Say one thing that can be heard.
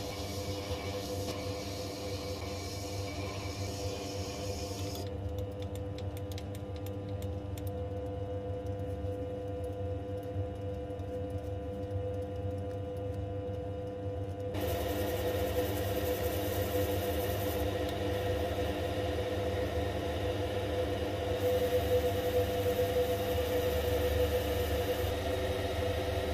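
A cutting tool scrapes against spinning metal.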